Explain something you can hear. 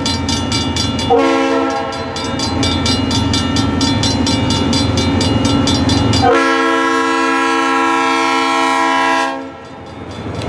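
A train's engine rumbles as it approaches.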